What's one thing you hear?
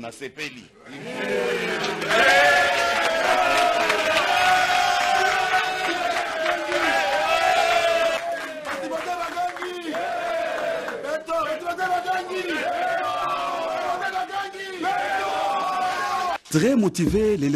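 A crowd of men sings loudly together.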